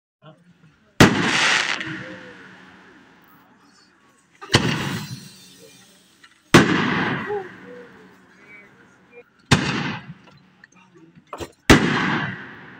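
Fireworks burst with loud booming bangs that echo outdoors.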